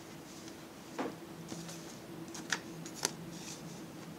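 A plastic ruler clicks down onto paper.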